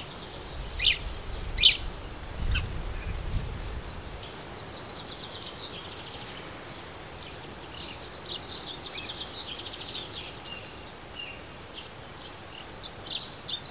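Sparrows chirp and twitter close by.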